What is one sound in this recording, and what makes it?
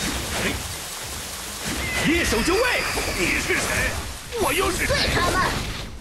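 Energy blasts burst and crackle loudly.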